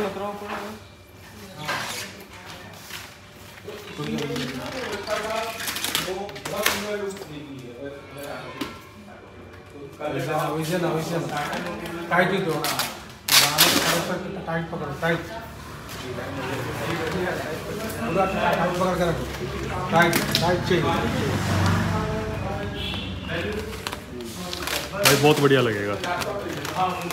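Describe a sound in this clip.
A plastic film crinkles and rustles as it is stretched.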